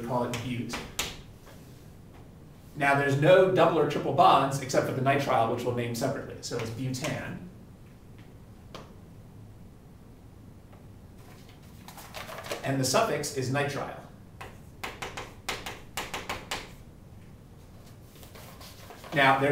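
A man speaks clearly and steadily, as if lecturing.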